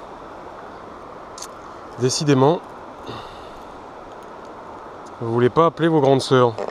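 A shallow river ripples and flows.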